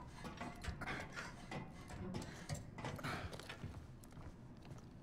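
Metal rungs clank as a person climbs a ladder.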